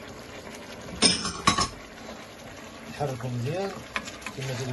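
A wooden spoon stirs a thick sauce in a pot.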